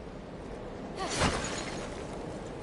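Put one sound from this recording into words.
A clay pot shatters loudly.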